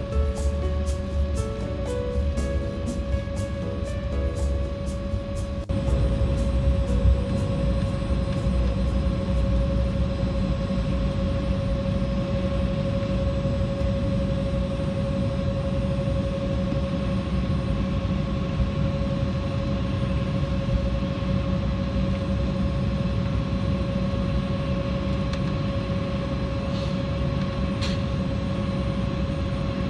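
Jet engines whine steadily, heard from inside an aircraft cabin.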